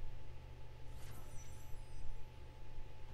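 A bright chime rings out once.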